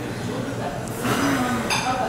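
A young woman blows out candles with a short puff of breath.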